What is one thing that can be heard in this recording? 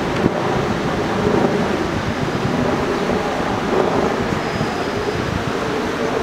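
A stream rushes steadily over stones outdoors.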